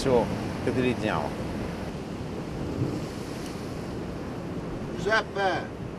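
Waves wash against the shore below.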